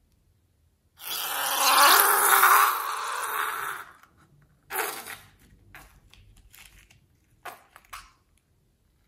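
Thick slime squelches as a ball is squeezed into it.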